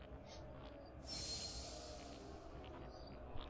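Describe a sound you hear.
A magical burst whooshes loudly and fades.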